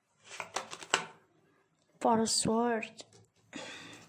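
A playing card slides and taps onto a table.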